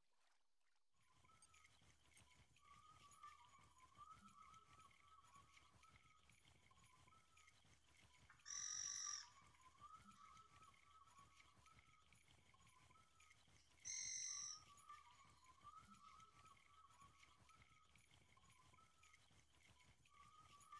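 A fishing reel clicks and whirs steadily as line is wound in.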